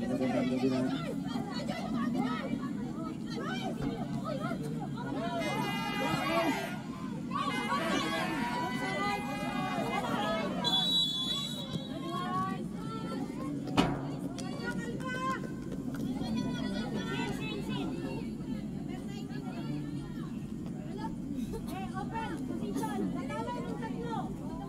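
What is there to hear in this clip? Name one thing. Young women shout to each other across an open outdoor field.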